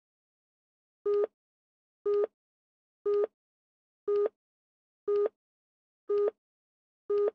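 A short electronic beep sounds once a second as a countdown ticks down.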